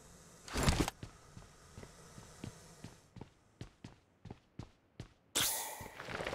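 Footsteps tread quickly on a hard floor.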